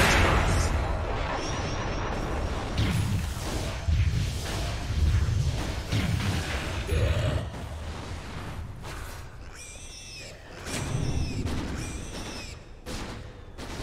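Spell effects crackle and blast in a video game battle.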